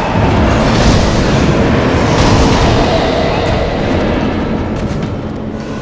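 A video game battle rumbles and crackles with loud energy blasts.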